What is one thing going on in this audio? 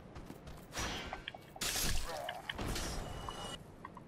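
A sword swishes through the air and strikes.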